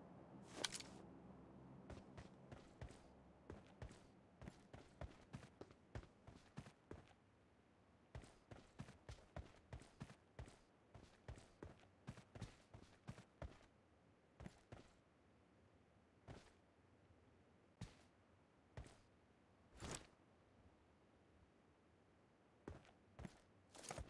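Footsteps rustle through leafy bushes.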